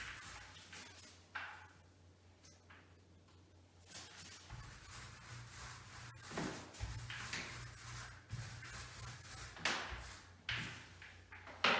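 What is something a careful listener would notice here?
A scraper rasps against a wall in short strokes.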